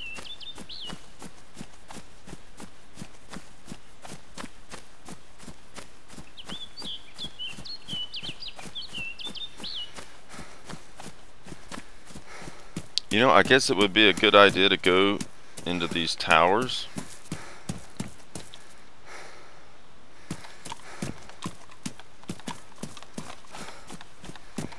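Footsteps swish steadily through grass.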